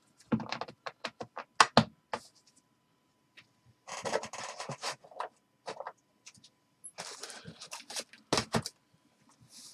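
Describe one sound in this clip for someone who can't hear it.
Cardboard boxes knock and tap against each other.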